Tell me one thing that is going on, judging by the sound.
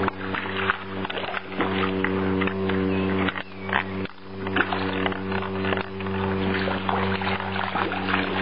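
Water splashes and laps close by.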